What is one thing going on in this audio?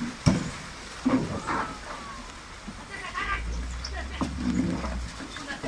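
Young people call out to one another outdoors.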